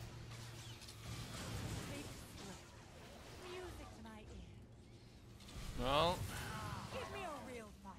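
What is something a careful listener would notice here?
Lightning crackles and buzzes in bursts.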